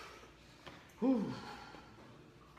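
A man grunts briefly.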